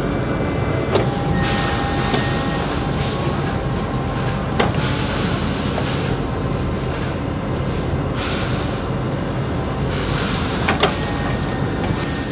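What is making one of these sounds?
Air hisses in bursts from a machine.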